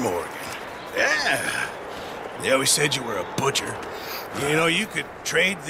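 A second man answers in a low, gravelly voice.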